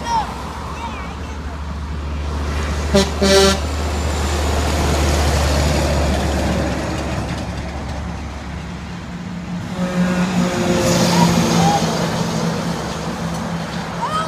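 Cars drive past on a road.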